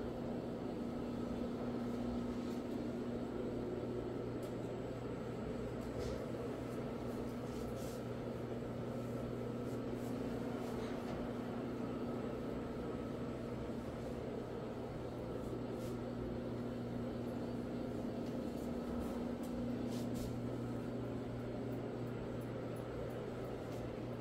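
A floor scrubbing machine hums and whirs steadily as it buffs a carpet.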